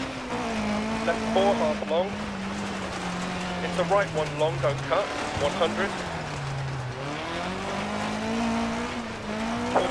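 A rally car engine drones and rises and falls in pitch as the car shifts gears.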